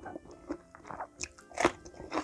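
A woman bites into a crunchy pepper with a crisp crunch.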